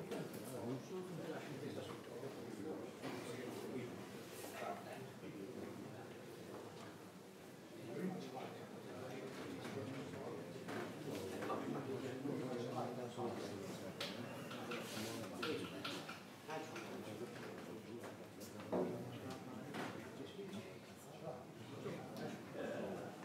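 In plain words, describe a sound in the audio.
Men talk and murmur nearby.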